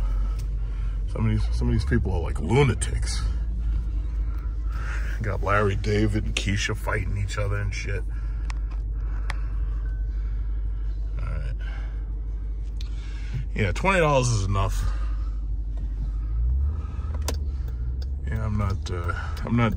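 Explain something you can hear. A car engine hums steadily inside the cabin.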